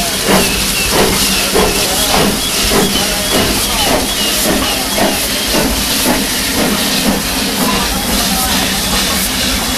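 A steam locomotive chuffs in rhythmic puffs close by.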